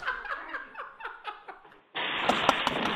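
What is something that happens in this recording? Several young men laugh loudly through headset microphones.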